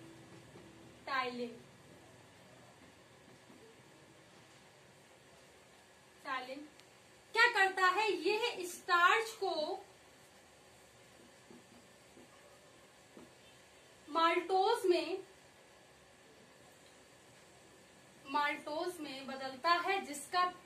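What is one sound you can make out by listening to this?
A young woman speaks clearly in short bursts.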